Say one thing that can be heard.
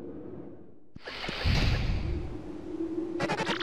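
A door swings open with a whoosh.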